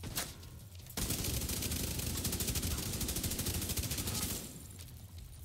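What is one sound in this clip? A rifle fires in a rapid, loud burst of shots.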